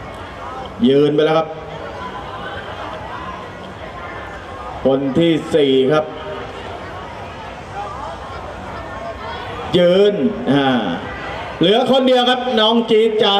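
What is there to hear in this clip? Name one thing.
A man calls out loudly in short bursts.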